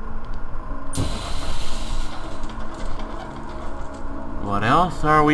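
Steam bursts from a pipe with a loud hiss.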